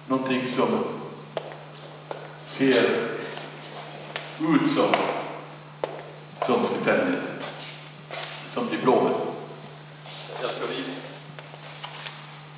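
An elderly man speaks calmly through a microphone in an echoing room.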